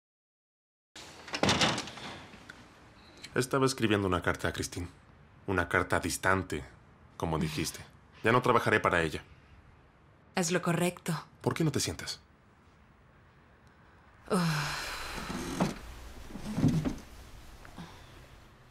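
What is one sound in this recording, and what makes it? A woman speaks at close range.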